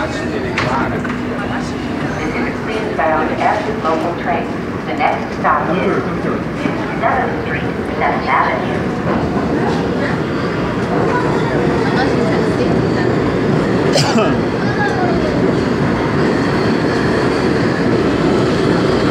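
A subway train rumbles.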